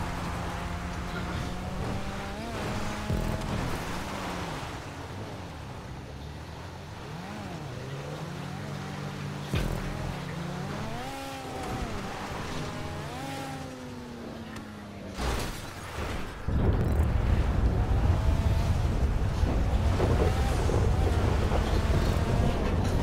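A car engine revs and roars.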